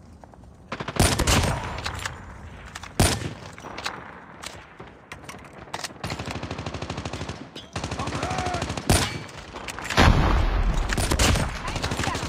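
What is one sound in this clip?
Gunshots crack sharply, one at a time.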